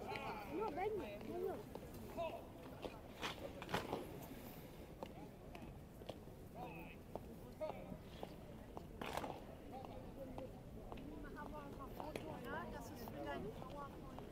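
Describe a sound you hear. A soldier's boots stamp sharply on pavement as he marches.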